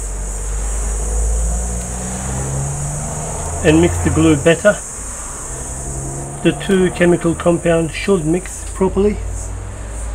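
A small screwdriver scrapes and clicks against metal screws.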